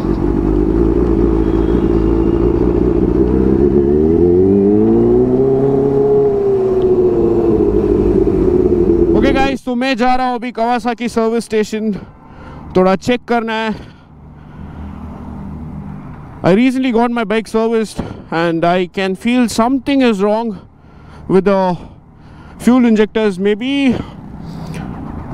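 A motorcycle engine rumbles and rises and falls in pitch as it revs.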